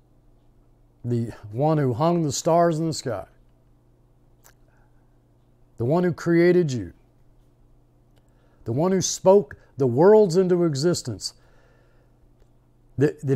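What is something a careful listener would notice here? An older man speaks calmly and closely into a microphone, in short bursts with pauses.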